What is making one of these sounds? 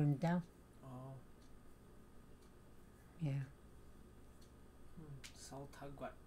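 An elderly woman speaks calmly in short phrases close by.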